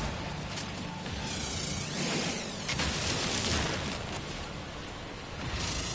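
A beam weapon hisses and crackles.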